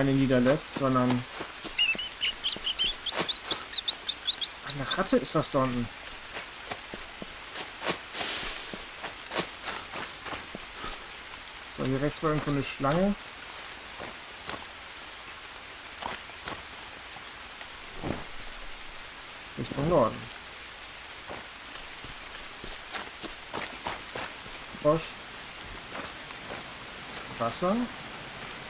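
Footsteps crunch through leaves and undergrowth.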